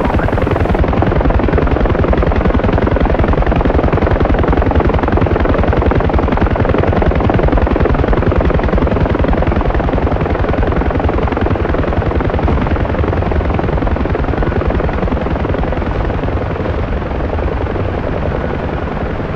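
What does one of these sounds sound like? Helicopter rotor blades thump rapidly and steadily from inside the cabin.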